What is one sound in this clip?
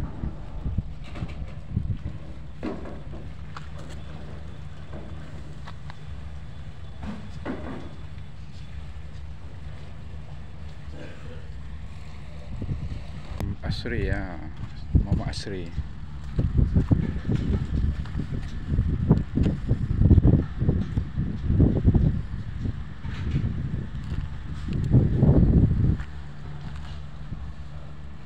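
Wind blows outdoors and buffets the microphone in loud gusts.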